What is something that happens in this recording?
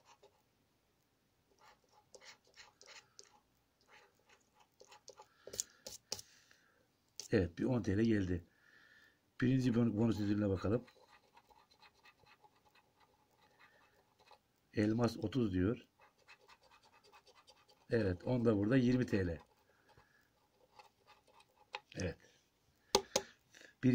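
A coin scratches quickly across a stiff paper card.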